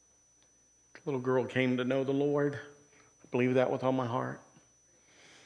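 A middle-aged man speaks slowly through a microphone, pausing often.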